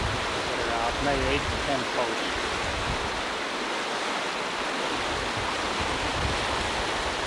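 A muddy flood river rushes and roars steadily.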